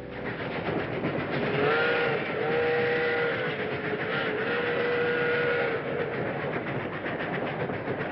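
A freight train rumbles and clatters along the tracks.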